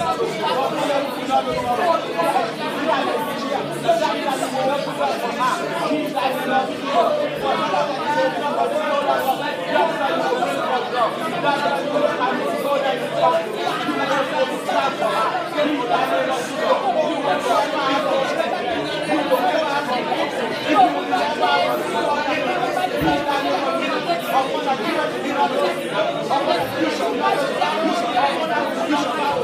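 A woman speaks with animation through a microphone and loudspeakers in a reverberant hall.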